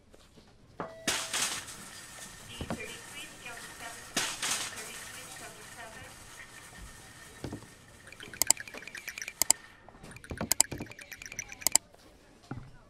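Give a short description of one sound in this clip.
A shopping cart rattles as it rolls over a hard floor.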